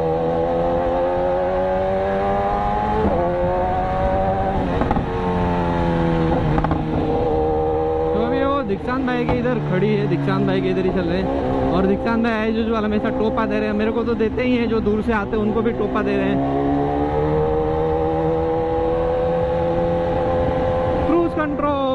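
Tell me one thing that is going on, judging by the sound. An inline-four sport bike engine revs hard, rising and falling through the gears.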